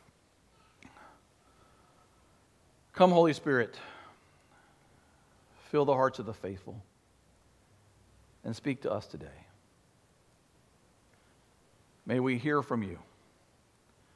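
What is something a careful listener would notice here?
A middle-aged man speaks with animation through a microphone, in short bursts with pauses.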